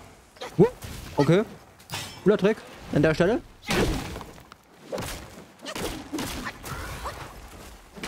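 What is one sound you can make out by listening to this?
A huge beast crashes onto the ground with a loud thump.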